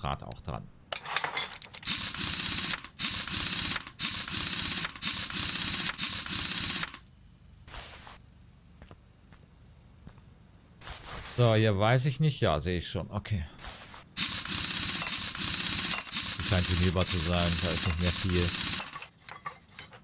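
An impact wrench whirs in long bursts, loosening wheel nuts.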